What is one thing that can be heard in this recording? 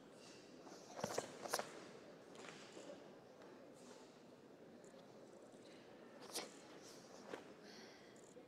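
A karate uniform snaps sharply with quick strikes.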